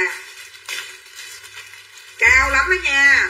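Plastic wrapping crinkles.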